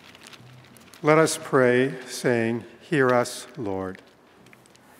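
An elderly man reads aloud calmly into a microphone in an echoing hall.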